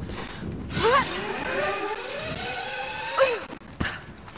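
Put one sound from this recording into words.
A pulley whines and rattles as it slides fast along a rope.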